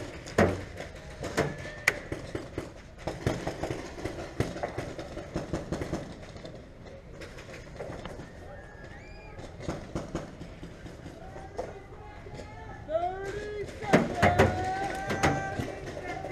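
An airsoft gun fires in sharp, scattered pops close by.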